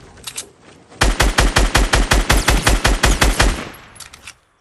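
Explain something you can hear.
Rapid gunfire rattles loudly in quick bursts.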